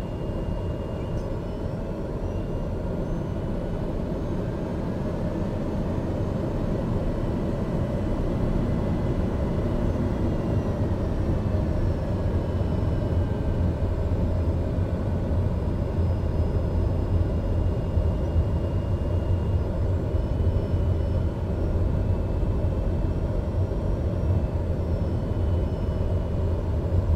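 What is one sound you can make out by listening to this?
A small plane's engine roars steadily and slowly grows louder.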